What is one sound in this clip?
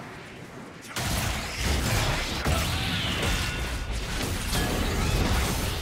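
Game spell effects whoosh and crackle in quick bursts during a fight.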